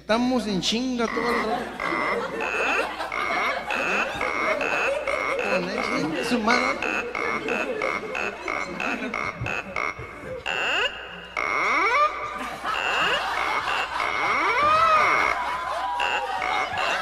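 An electronic keyboard plays a lively melody.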